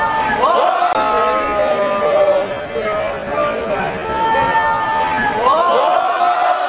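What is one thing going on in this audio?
A crowd cheers in the stands.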